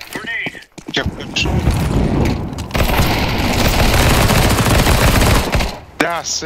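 A submachine gun fires rapid, loud bursts.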